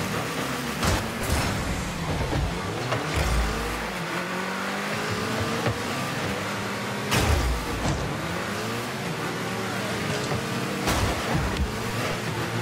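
Sharp thumps of a car striking a ball ring out a few times.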